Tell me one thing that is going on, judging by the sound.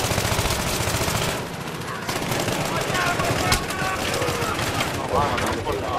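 An assault rifle fires bursts in a video game.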